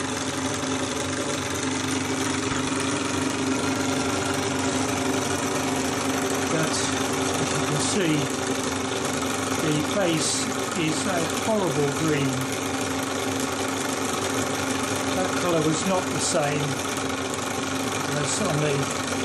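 A small model engine runs with a steady whirring hum.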